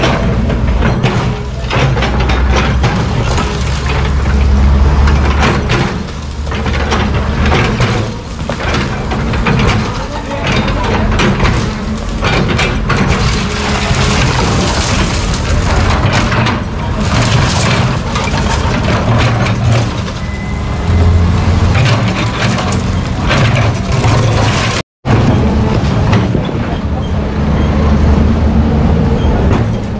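An excavator engine rumbles and whines steadily nearby.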